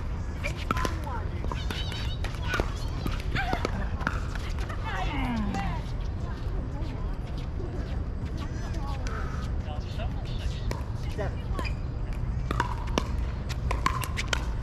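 Paddles pop against a plastic ball in quick volleys.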